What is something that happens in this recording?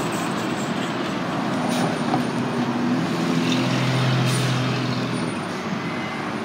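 A bus engine rumbles as the bus drives past close by.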